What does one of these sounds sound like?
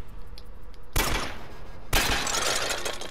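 A gun fires twice with loud sharp bangs.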